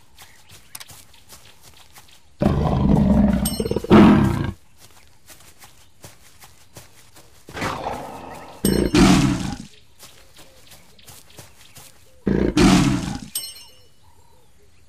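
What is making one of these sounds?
A big cat's paws pad softly over dry ground.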